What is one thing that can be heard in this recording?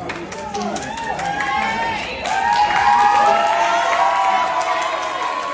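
A crowd of young women cheers and screams loudly in a large hall.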